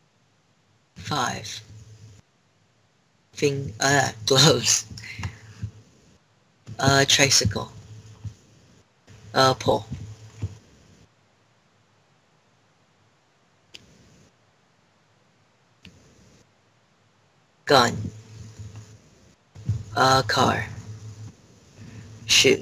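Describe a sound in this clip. A teenage boy talks in short bursts over an online call, close to the microphone.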